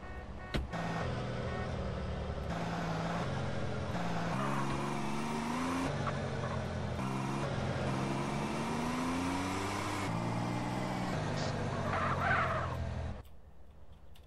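A car engine revs and drives away.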